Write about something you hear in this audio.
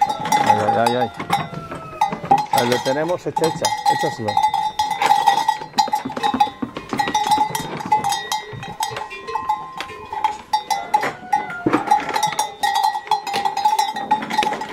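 Dry hay rustles as calves pull at it.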